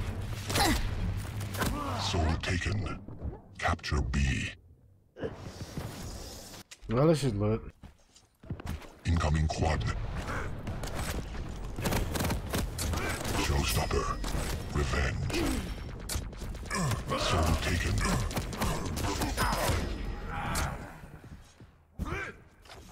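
Rapid gunfire and laser blasts crackle in a video game.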